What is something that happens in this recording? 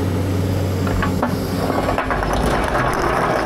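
Paving stones clatter as they tip into a trailer.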